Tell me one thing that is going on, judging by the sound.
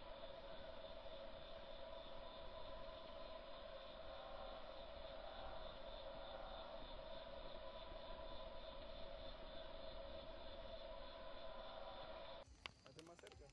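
Flames roar steadily in a fire pit.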